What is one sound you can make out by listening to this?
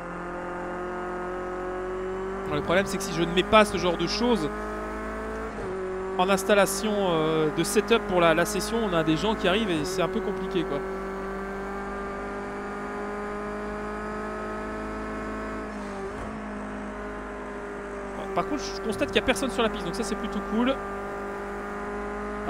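A race car engine drones steadily and shifts pitch with the gears.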